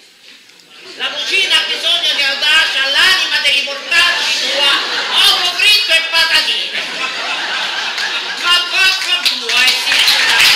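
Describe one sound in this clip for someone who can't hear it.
A woman speaks with animation on a stage, heard in a large echoing hall.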